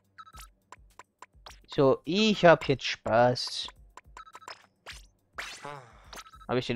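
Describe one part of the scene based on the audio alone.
Short electronic menu blips sound again and again as selections change.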